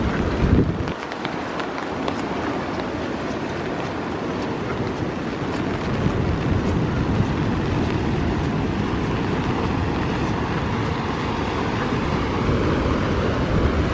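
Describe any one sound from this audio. Strong wind rumbles and gusts outdoors.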